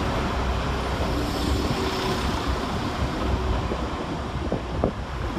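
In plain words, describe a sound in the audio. A diesel train rumbles steadily as it slowly pulls along a platform.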